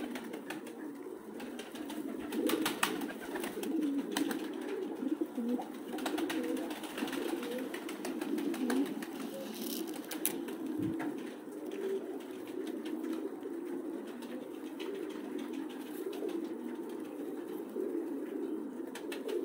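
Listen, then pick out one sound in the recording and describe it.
Pigeons flap their wings in short bursts.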